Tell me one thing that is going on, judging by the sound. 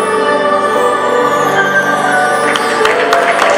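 A boys' choir sings in a large echoing hall.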